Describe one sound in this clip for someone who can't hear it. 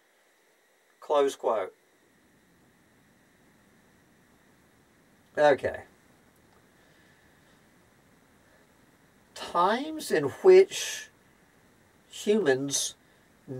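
An elderly man speaks slowly in short phrases, close by.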